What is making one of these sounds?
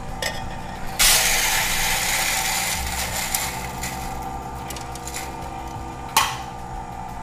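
A coffee grinder whirs steadily.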